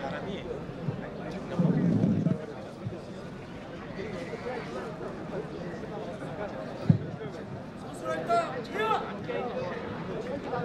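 An elderly man speaks through a microphone and loudspeakers outdoors.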